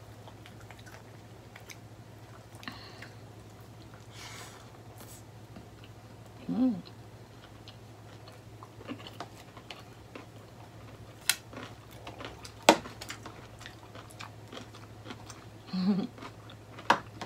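Food and a plate clatter softly as a young woman picks food up by hand.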